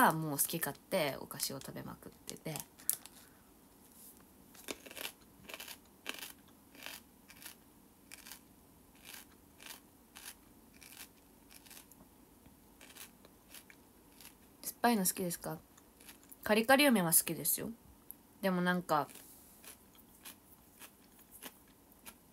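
A plastic wrapper crinkles in someone's hands.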